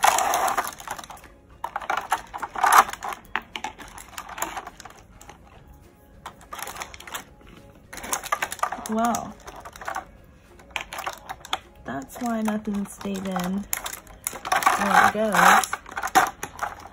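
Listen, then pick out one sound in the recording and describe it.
Plastic bottles clatter against a crinkly plastic tray.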